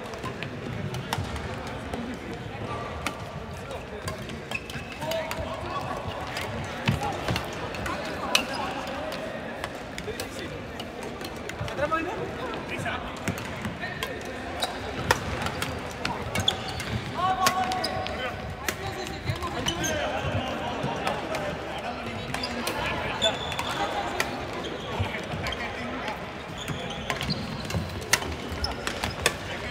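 Shoes squeak on a wooden court floor.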